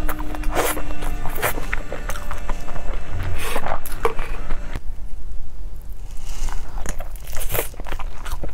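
A young woman chews food wetly and loudly close to a microphone.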